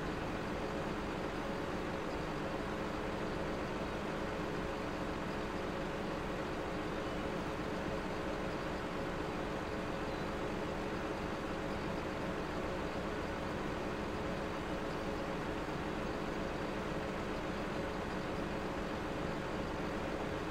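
A heavy machine's diesel engine hums steadily.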